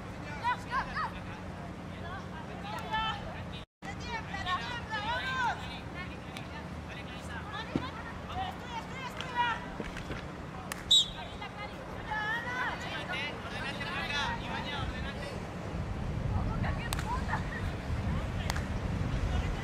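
A hockey stick clacks sharply against a ball outdoors.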